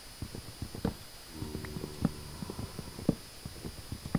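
Wooden blocks break with dull crunching thuds.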